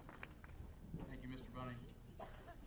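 A man speaks calmly through a microphone and loudspeakers outdoors.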